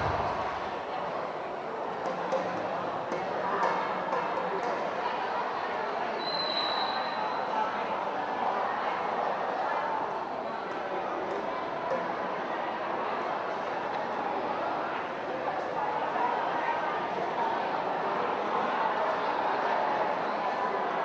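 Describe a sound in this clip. A young man speaks over a loudspeaker.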